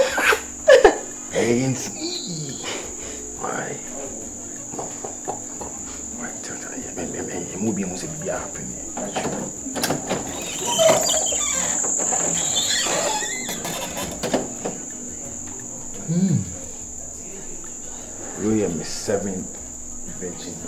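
A man speaks in a low, pleading voice close by.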